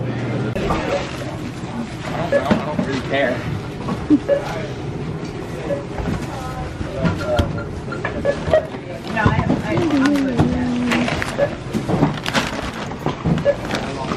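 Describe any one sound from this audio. Groceries rustle as they are packed into a bag.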